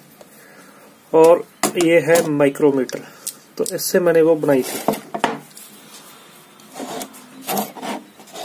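Small metal measuring tools click and clink as hands handle them.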